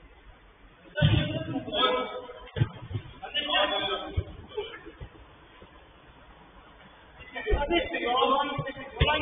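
Men shout and call out across an echoing indoor pitch.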